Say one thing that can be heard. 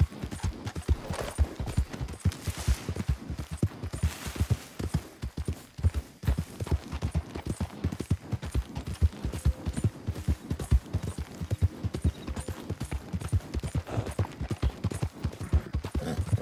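Tall grass rustles and swishes around a galloping horse.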